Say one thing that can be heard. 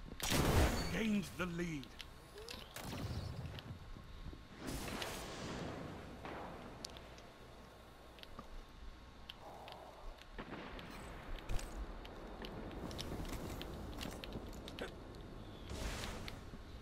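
Loud gunshots fire in short bursts with echoing blasts.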